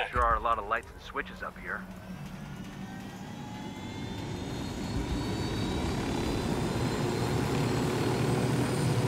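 A helicopter's engine whine rises in pitch as it spools up.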